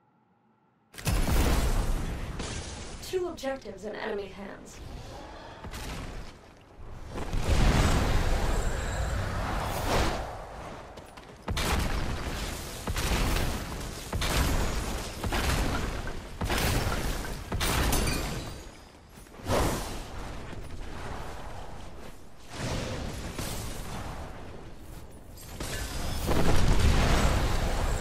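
Magical blasts burst and whoosh loudly.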